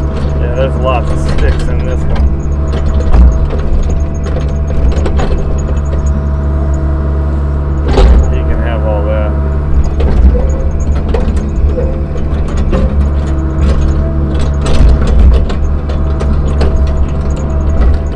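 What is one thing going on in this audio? A diesel excavator engine rumbles steadily up close.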